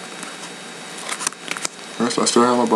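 Plastic binder pages crinkle and rustle as they turn.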